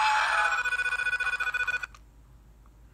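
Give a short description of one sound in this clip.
Retro video game music and sound effects play from a small handheld console speaker.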